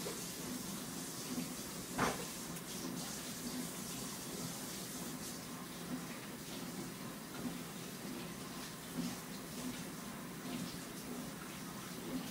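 A toddler chews and smacks softly up close.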